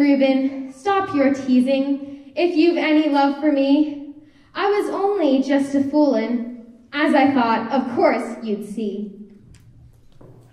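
A young woman speaks calmly into a microphone in a large hall.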